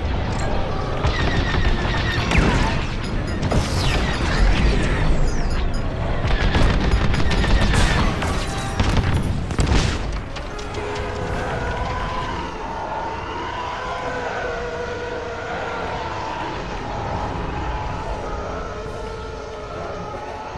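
A starfighter engine roars steadily.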